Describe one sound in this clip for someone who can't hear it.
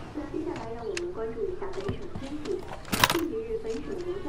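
A small radio clicks and rattles as hands handle it.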